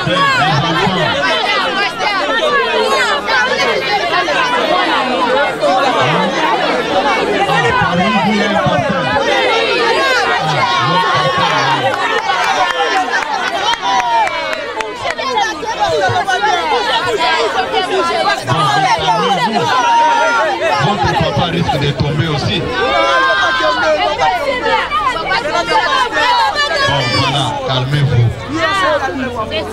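A crowd of people chatters and shouts all around.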